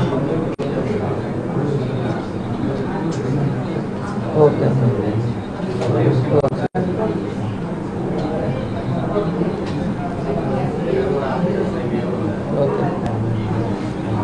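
A woman talks on a phone in a low voice.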